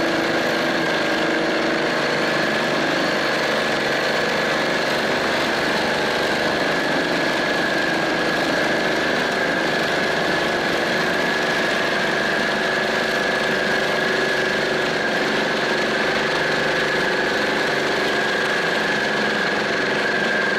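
A boat's motor drones steadily close by.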